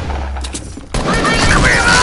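Gunshots fire in quick bursts nearby.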